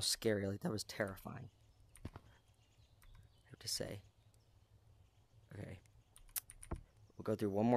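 A keyboard key clicks a few times.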